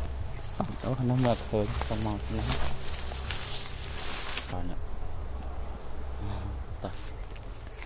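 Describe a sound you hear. A swarm of bees buzzes close by.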